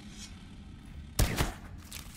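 A tool swings and strikes with a sharp thud.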